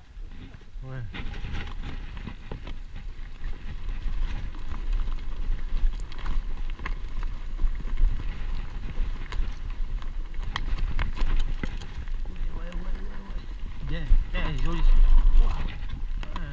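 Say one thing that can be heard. A bicycle rattles and clatters over bumps and roots.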